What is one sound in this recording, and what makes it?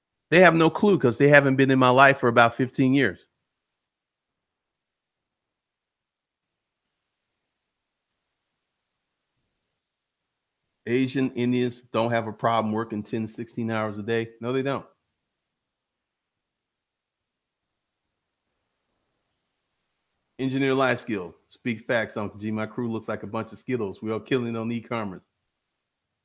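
A man speaks calmly and closely into a microphone, with long pauses.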